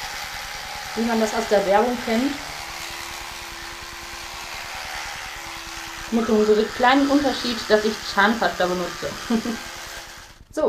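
A young woman makes muffled sounds while brushing her teeth.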